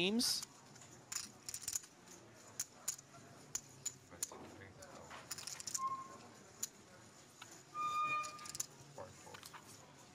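Poker chips click and clatter as a man handles them.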